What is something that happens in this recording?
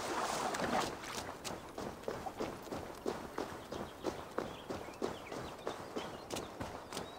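Footsteps rustle through grass at a steady walking pace.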